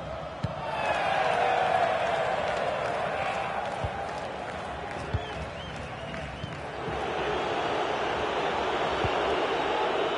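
A football thuds off a boot now and then.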